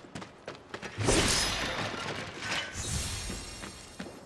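A wooden crate smashes apart with a loud crash.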